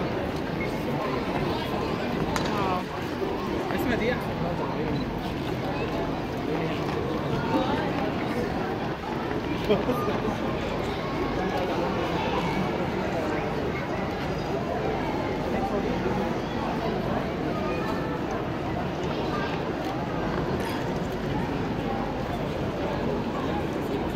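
A crowd murmurs and chatters throughout a large echoing arena.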